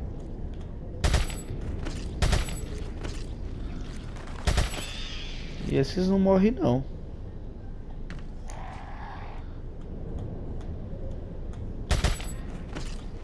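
A gun fires single loud shots.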